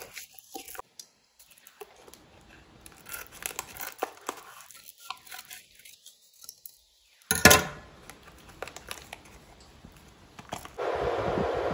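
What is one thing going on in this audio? Foil crinkles as hands handle a packet.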